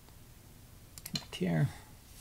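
A stone clicks as it is placed on a game board.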